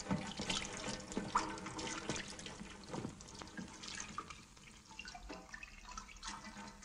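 Water from a hose splashes onto a body.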